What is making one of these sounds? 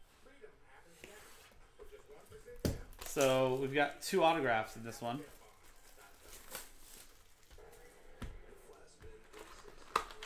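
Cardboard packaging rustles and tears as a box is opened.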